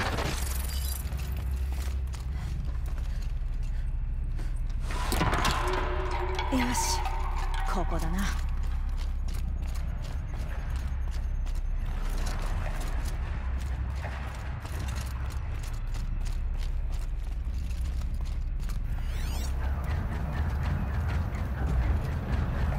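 Footsteps crunch over snowy ground.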